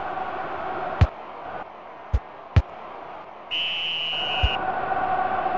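A football is kicked with sharp thumps.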